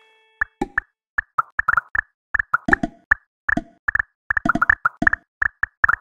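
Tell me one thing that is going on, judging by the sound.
Short bright game chimes pop in quick succession.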